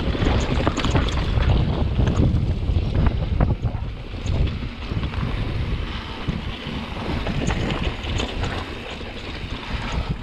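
A bicycle's frame and chain clatter over bumps.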